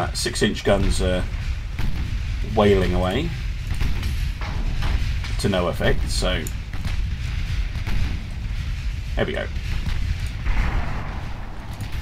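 Heavy naval guns boom repeatedly.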